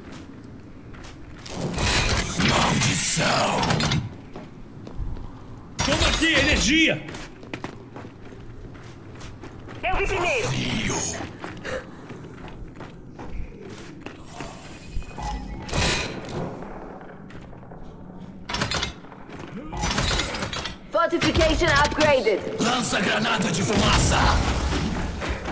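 Heavy boots thud on hard ground as a soldier walks.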